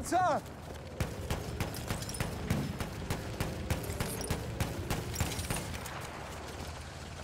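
Pistol shots crack in quick succession.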